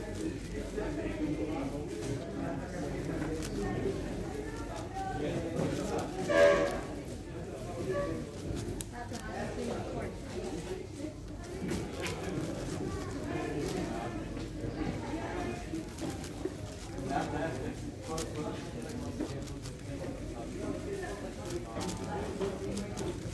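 Plastic puzzle cube layers click and clatter as they are turned quickly.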